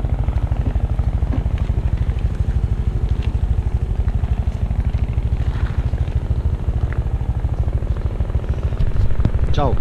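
A motorbike engine idles with a steady, throbbing putter close by.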